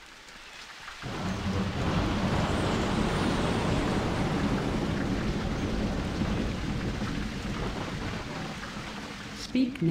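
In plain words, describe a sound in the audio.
Rain pours down steadily outdoors.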